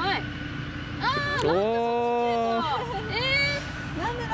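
A young woman exclaims in surprise, close by.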